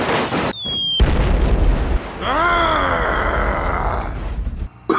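Vehicle parts crash and clatter onto a road.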